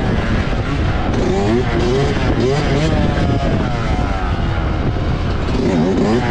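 Wind rushes over the microphone.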